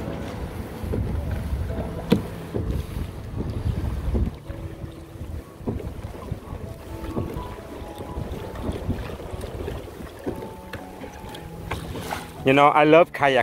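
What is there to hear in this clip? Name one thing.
Wind buffets the microphone in gusts.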